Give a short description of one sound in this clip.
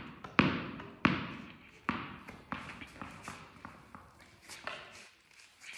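A tennis ball bounces on a hard floor, each bounce quicker and softer, echoing around a large hall.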